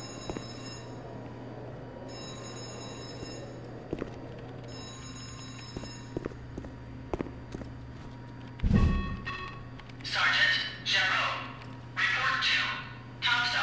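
Keys clatter softly on a laptop keyboard.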